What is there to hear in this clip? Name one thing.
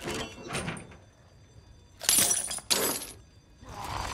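Bolt cutters snap through a metal chain.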